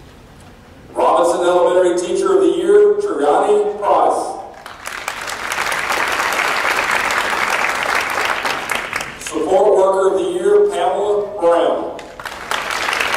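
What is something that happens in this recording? A man announces names through a loudspeaker in a large echoing hall.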